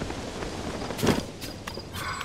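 A figure lands on the ground with a thud.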